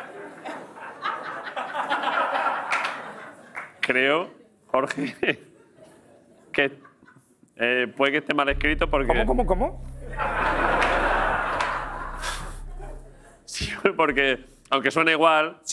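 A second man answers with a laugh.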